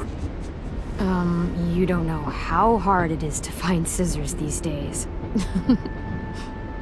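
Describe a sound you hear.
A young girl speaks hesitantly, up close.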